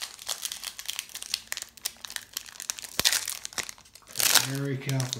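Foil wrapping crinkles and tears as a pack is ripped open.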